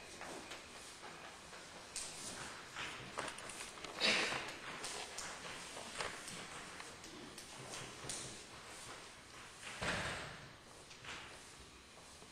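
A man speaks calmly to an audience in a large room.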